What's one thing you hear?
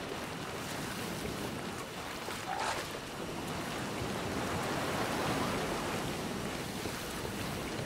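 Grass and leaves rustle as someone pushes through them.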